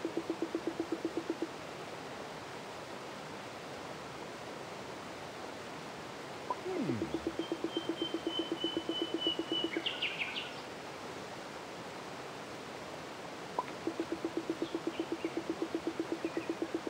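Rapid electronic blips patter in a quick, even rhythm.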